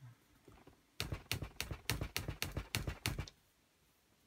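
A computer mouse clicks rapidly several times.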